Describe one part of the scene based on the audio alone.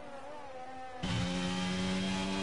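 A racing car engine roars loudly up close.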